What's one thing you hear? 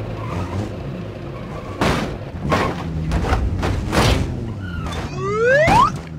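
A car engine hums at low speed.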